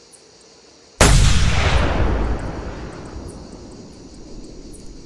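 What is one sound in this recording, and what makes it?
A rifle fires a single loud shot that booms and rolls away in a long echo.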